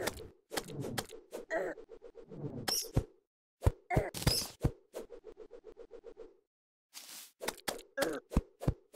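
Enemies are hit with quick thuds.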